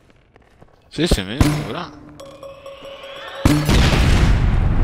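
A gun fires bursts of shots.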